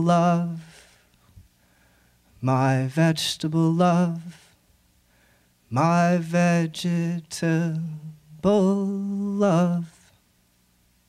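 A young man sings slowly into a microphone.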